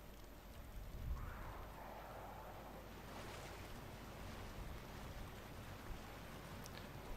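Water gushes from a pipe and splashes into a pool.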